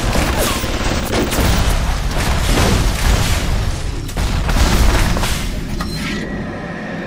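A grenade explodes with a loud, rumbling boom.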